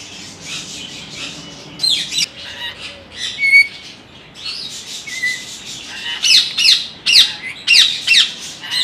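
Parrots squawk and screech in sharp, repeated bursts.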